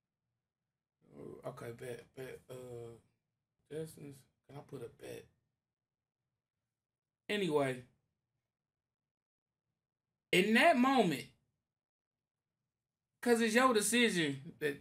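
A man talks with animation close to a microphone, in short bursts with pauses.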